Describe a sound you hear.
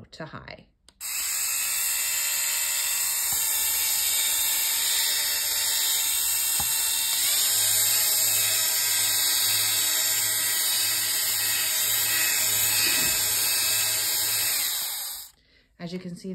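A handheld electric device whirs with a loud, steady hissing rush.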